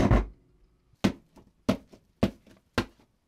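A hand taps a loudspeaker cone with sharp knocks.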